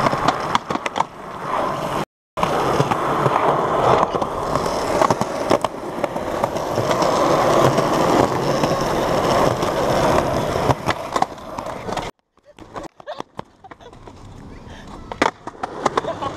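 A skateboard clacks sharply as it lands tricks.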